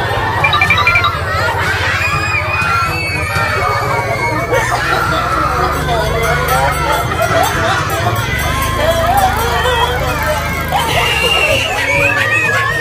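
A crowd of women and children laugh and shout excitedly nearby.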